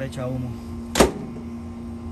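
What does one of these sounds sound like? A microwave door thumps shut.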